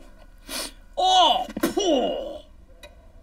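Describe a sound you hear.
An elderly man cries out loudly in surprise.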